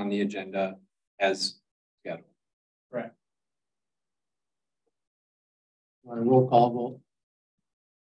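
A man speaks in short bursts through a microphone in a room, with pauses between.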